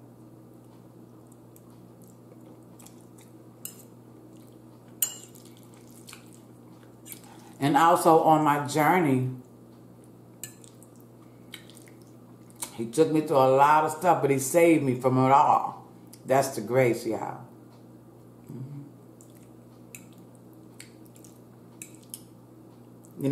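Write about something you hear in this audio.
A woman chews and slurps noodles close to a microphone.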